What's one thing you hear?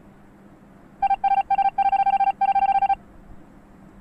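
Rapid electronic beeps chatter in a quick burst.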